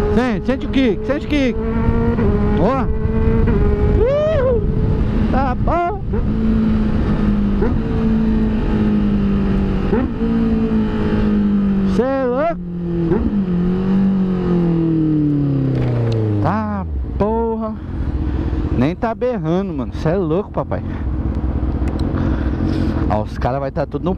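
A motorcycle engine hums steadily, then winds down as the bike slows to idle.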